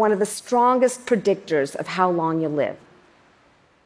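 A woman speaks calmly through a microphone in a large echoing hall.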